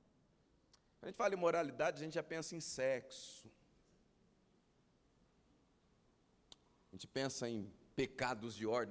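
A man speaks with animation through a microphone in a large hall, pausing between phrases.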